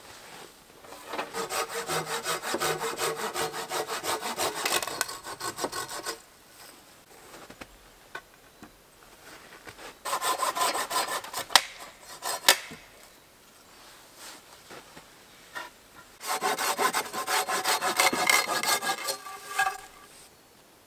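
A hand saw cuts back and forth through wood in quick bursts.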